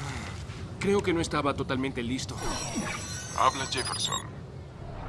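A young man speaks urgently.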